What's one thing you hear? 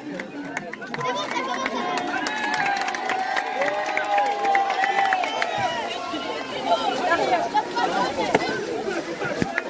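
A crowd cheers and shouts excitedly.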